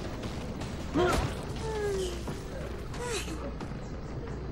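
A heavy blow strikes with a sharp thud.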